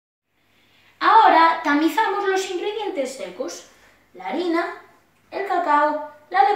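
A boy talks with animation close by.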